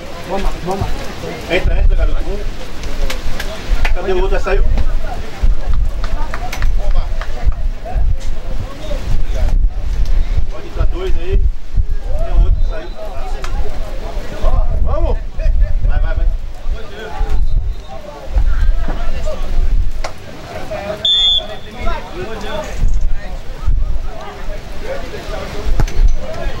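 Teenage boys call out and talk nearby outdoors.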